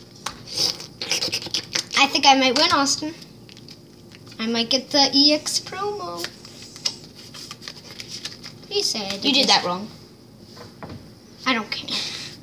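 Foil card packs crinkle as they are handled.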